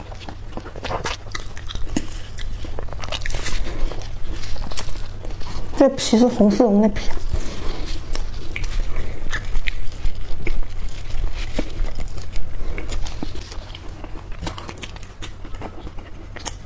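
A young woman chews and munches close to a microphone.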